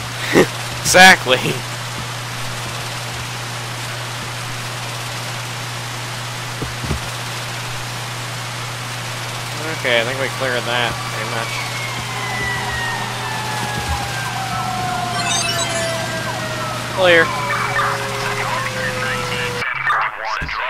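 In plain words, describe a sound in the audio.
Water sprays from a hose with a steady hiss.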